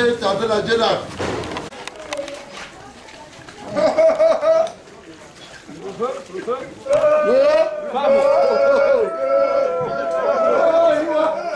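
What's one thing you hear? A group of men and women chant and sing together nearby.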